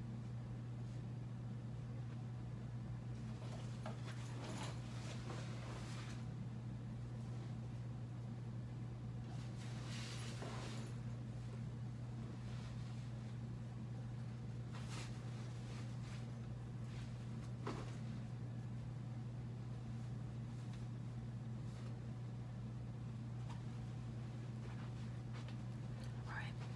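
Feet thump and shuffle on a floor.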